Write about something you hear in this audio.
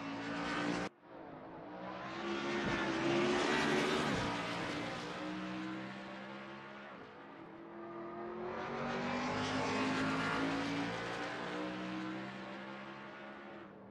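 Racing car engines roar past, swelling and then fading away.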